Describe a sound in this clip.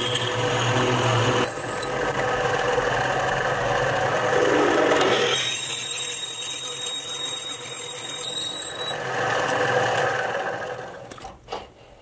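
A drill whirs steadily as it bores into wood.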